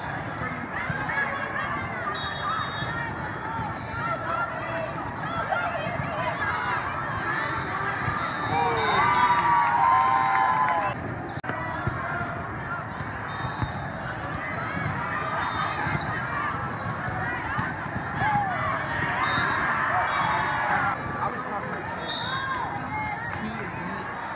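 A crowd of players and spectators calls and chatters in a large echoing hall.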